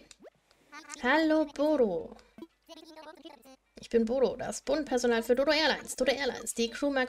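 A cartoonish bird voice babbles in quick, squawky gibberish.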